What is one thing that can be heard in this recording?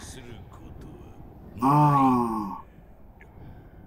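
A second young man laughs close to a microphone.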